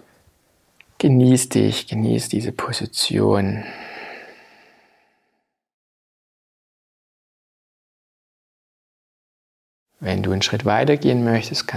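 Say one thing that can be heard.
A man speaks calmly and closely, pausing between phrases.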